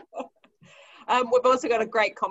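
A woman speaks warmly over an online call.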